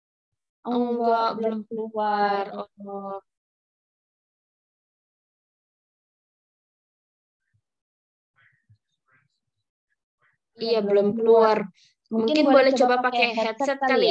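A young woman speaks calmly over an online call, pausing between phrases.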